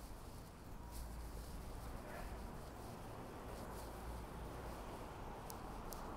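A car's engine hums as it passes close by.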